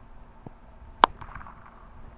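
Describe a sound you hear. A cricket bat cracks sharply against a ball.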